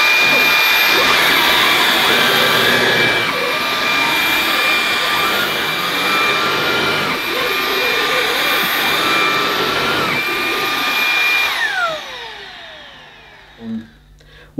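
A cordless vacuum cleaner whirs steadily on carpet, then winds down.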